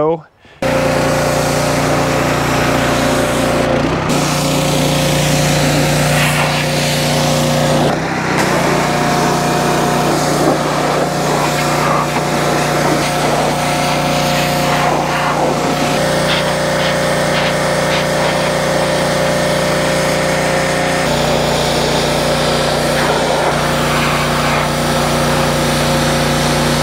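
A high-pressure water jet hisses and sprays against metal.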